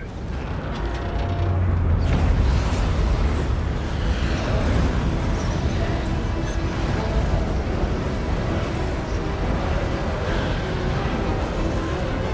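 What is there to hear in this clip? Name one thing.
A deep, powerful roar swells up and rumbles on steadily.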